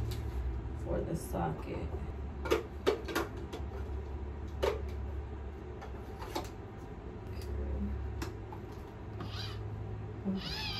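Packaging and plastic rustle and click as items are handled.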